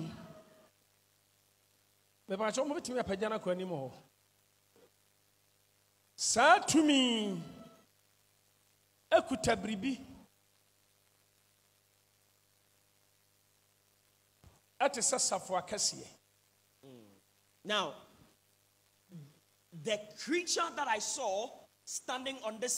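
An older man speaks with animation into a microphone, heard through a loudspeaker, with pauses.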